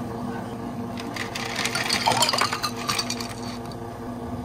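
Water pours into a glass of ice.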